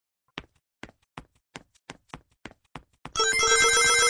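Short electronic ticks sound in a steady quickening run.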